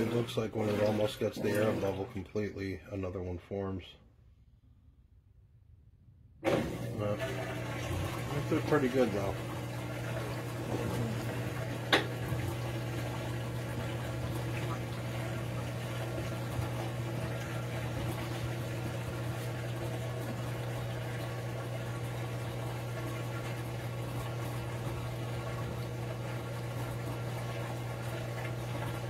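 Water sloshes and churns in a washing machine drum.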